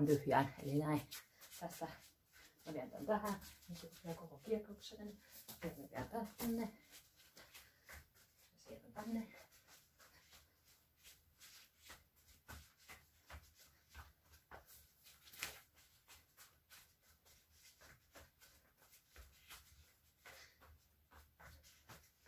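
Feet thump and shuffle on a floor.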